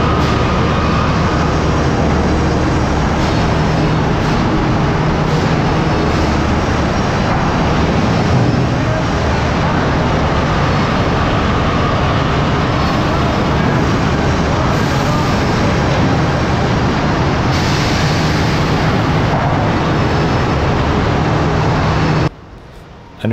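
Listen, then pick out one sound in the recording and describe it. Factory machinery hums and rattles loudly in a large hall.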